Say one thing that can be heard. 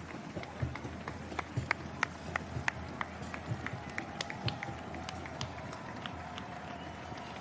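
Running shoes slap rapidly on the road.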